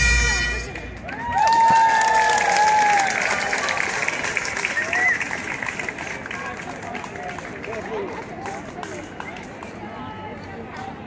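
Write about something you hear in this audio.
A crowd claps and cheers loudly, then the applause fades.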